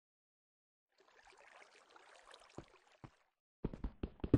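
Water trickles and splashes.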